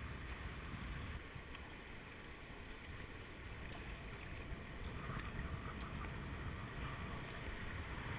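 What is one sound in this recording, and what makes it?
River rapids rush and churn steadily nearby.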